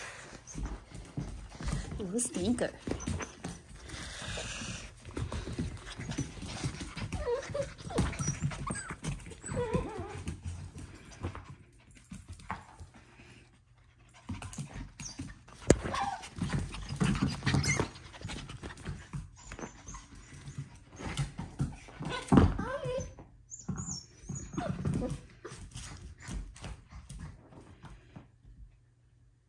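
Small dogs' claws patter and scrabble across a hard floor.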